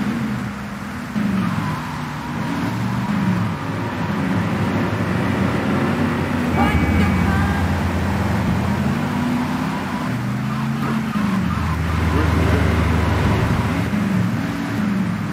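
A car engine hums and revs, rising and falling in pitch.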